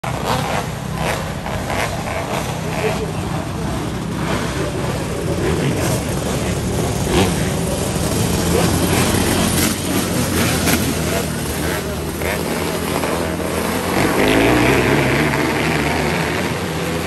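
Racing car engines roar loudly as a pack of cars speeds around a dirt track.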